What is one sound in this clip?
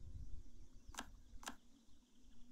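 A soft click sounds twice.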